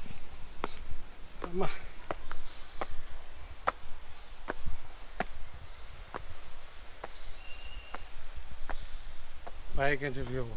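Footsteps tread on stone steps.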